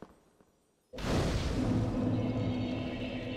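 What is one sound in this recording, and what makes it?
A fire flares up with a whoosh and crackles.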